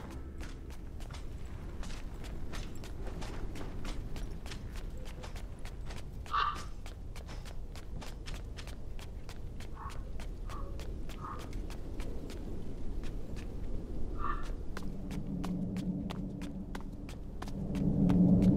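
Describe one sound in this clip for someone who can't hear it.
Quick soft footsteps patter on stone.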